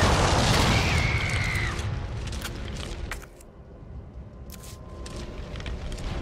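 Flames crackle.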